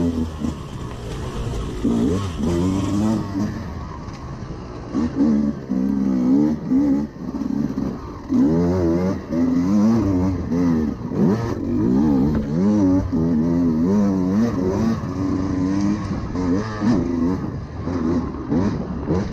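A dirt bike engine revs hard, rising and falling in pitch.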